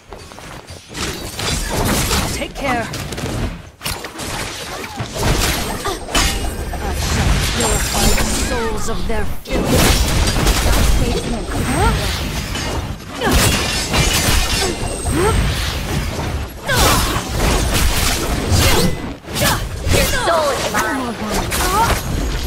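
Glowing sword strikes whoosh and crackle with energy bursts.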